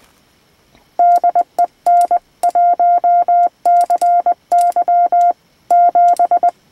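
A radio sends out quick, even beeps of Morse code.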